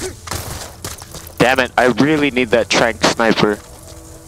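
Footsteps run over dry ground.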